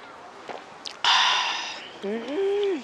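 A young woman sighs contentedly after a sip.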